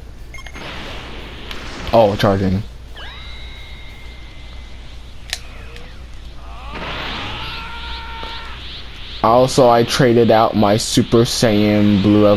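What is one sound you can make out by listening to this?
Energy blasts whoosh and crackle in a fight.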